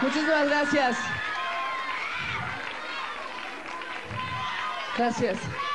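A crowd cheers and screams in a large hall.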